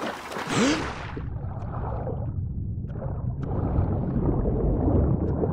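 Muffled, low underwater rumbling surrounds a diving swimmer.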